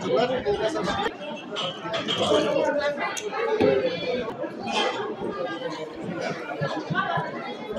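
Cups clink on saucers.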